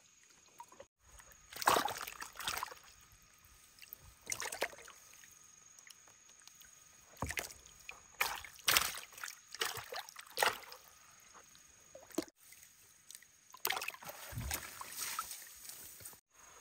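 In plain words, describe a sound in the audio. Water splashes as hands grab fish in a tub.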